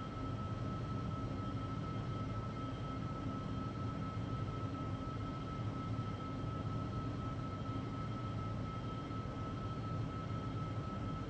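Jet engines roar steadily in flight.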